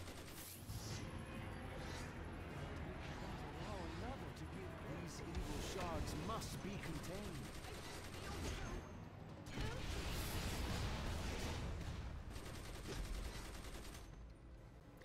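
Magic blasts and punches crackle and thud in a fight.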